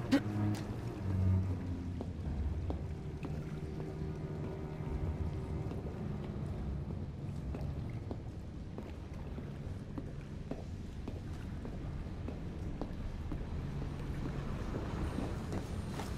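Footsteps tap on a metal grate floor.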